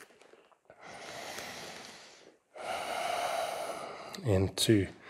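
A woman breathes in and out deeply.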